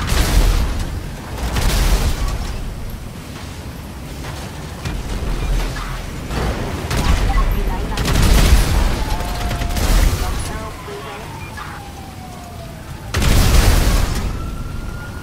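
Explosions boom again and again.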